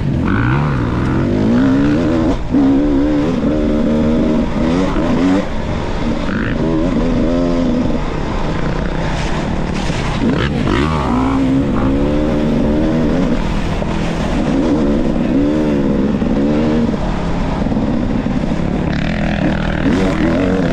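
A dirt bike engine revs and burbles up and down close by.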